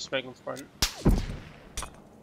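A rifle shot cracks and booms nearby.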